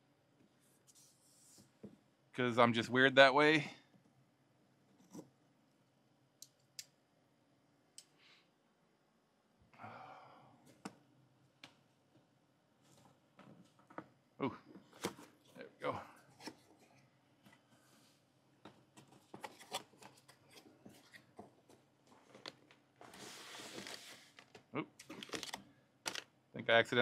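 Cardboard rustles and scrapes as a box is handled and opened.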